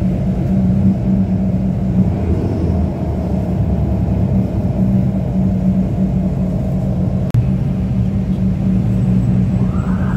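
A vehicle's engine rumbles steadily as it drives along.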